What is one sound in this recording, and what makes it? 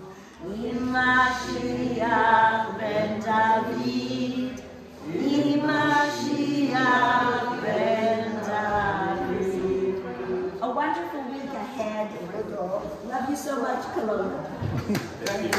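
A group of people sing together, with a woman's voice leading.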